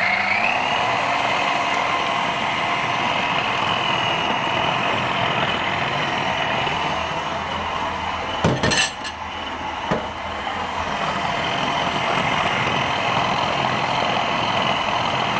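A food processor motor whirs loudly and steadily.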